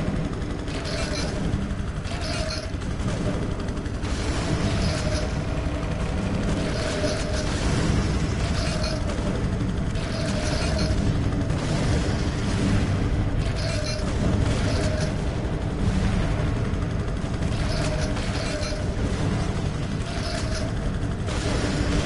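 A helicopter's rotor thuds steadily overhead.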